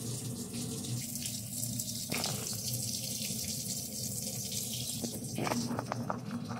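Water sprays out of a filter nozzle with a steady hiss.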